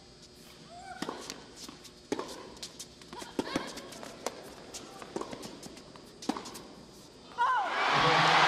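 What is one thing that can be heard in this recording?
A tennis ball is struck sharply by rackets.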